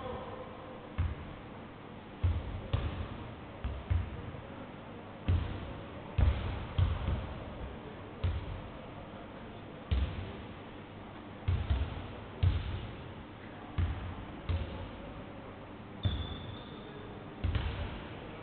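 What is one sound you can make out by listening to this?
Basketballs bounce on a wooden floor, thudding in a large echoing hall.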